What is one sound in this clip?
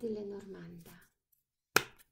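Cards rustle in someone's hands.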